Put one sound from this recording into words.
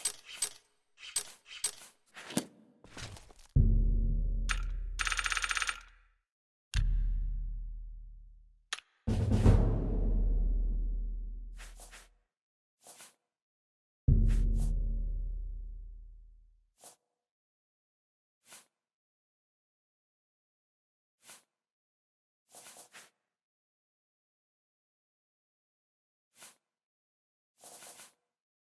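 Soft clicks sound as menu options are picked.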